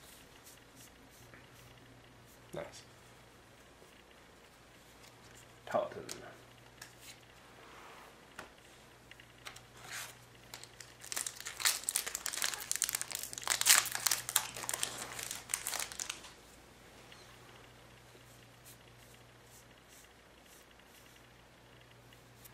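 Playing cards rustle and slide softly in someone's hands.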